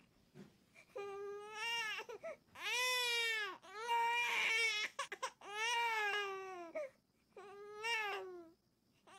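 A baby cries loudly and wails close by.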